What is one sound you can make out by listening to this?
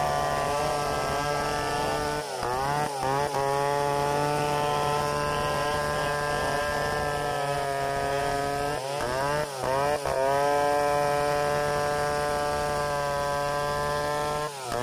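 A large two-stroke chainsaw rips lengthwise through a log under load.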